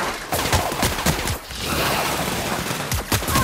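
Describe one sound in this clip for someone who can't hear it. An energy gun fires in rapid crackling bursts.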